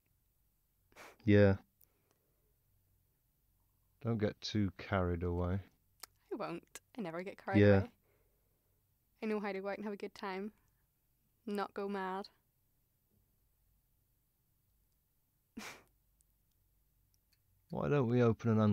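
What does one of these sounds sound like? A young woman speaks with animation, close by, in short bursts.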